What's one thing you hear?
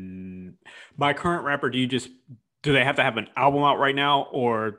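A second man speaks calmly into a close microphone over an online call.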